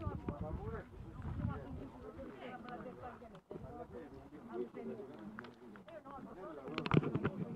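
Several men talk with one another nearby outdoors.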